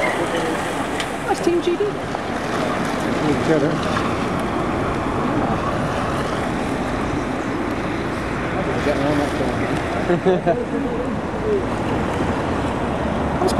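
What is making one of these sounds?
Car engines hum steadily as vehicles drive past close by.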